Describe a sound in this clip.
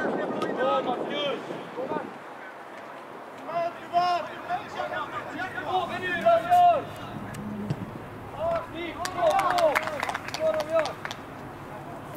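Young men shout to each other across an open pitch, outdoors.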